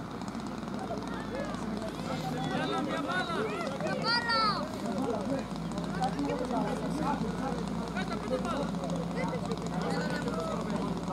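Young boys shout and call out to each other outdoors.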